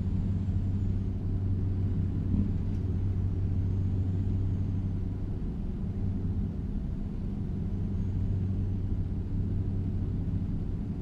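A truck engine hums low and steady.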